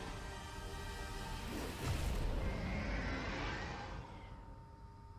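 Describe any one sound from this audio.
A monstrous creature roars with a deep, rumbling growl.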